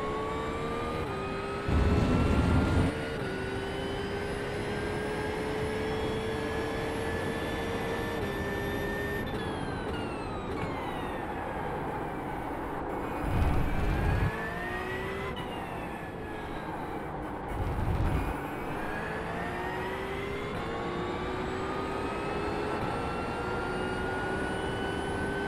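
A racing car engine roars and revs up and down through gear changes.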